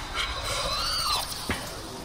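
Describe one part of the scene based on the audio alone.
A swirling energy portal roars and whooshes.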